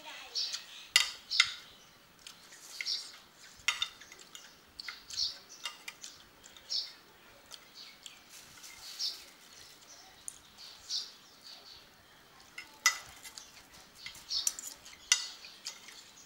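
A metal spoon clinks against a plate.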